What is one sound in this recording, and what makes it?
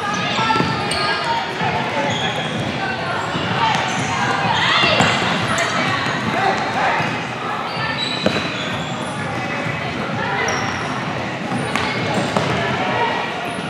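A ball thumps against the floor and feet.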